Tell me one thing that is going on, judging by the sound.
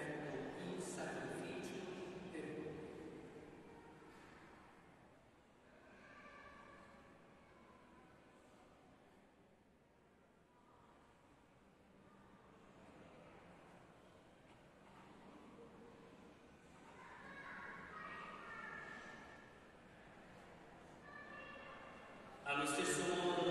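A man chants through a microphone, echoing in a large hall.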